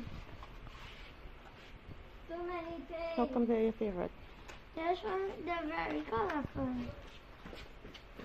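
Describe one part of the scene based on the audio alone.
Plastic packages rustle in a boy's hands.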